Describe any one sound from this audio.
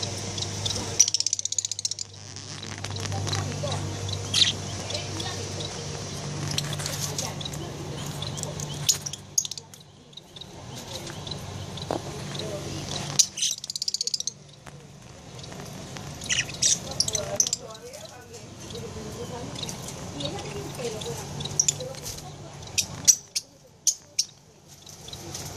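Budgies chirp and twitter nearby.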